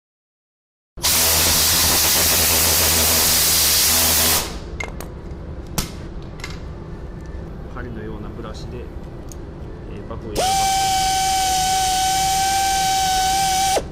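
An air polisher whirs loudly at high speed.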